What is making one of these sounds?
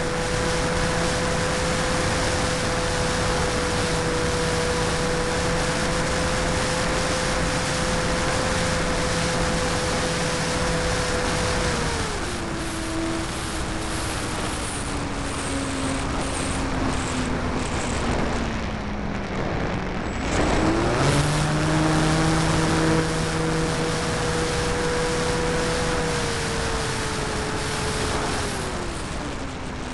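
Wind rushes past a model plane.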